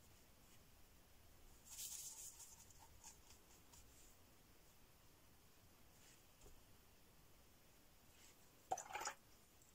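A paintbrush swirls and clinks in a cup of water.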